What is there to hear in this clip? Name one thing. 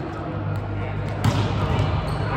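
A volleyball is struck hard with a loud slap in a large echoing hall.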